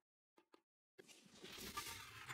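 A blade swishes through the air with a whooshing burst.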